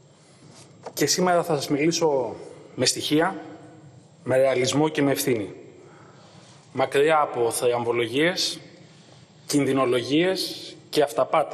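A middle-aged man speaks with animation into a microphone in a large echoing hall.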